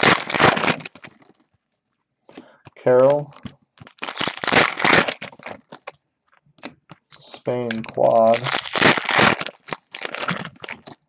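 Foil wrappers crinkle and rustle in bursts as they are handled.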